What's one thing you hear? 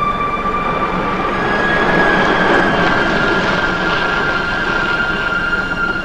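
A car engine hums as a car pulls in and stops.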